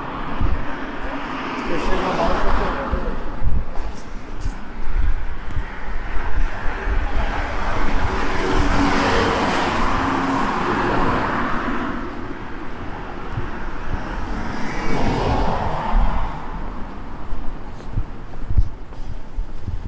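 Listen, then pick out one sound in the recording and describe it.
Cars pass by on a nearby road, their tyres swishing on the asphalt.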